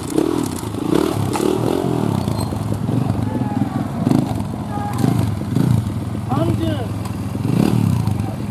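A motorcycle engine revs in bursts, close by.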